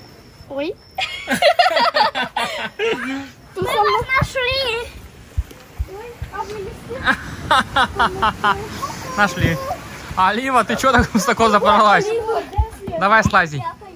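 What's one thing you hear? Children talk and shout excitedly nearby.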